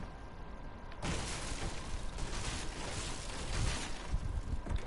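An explosion booms and roars loudly.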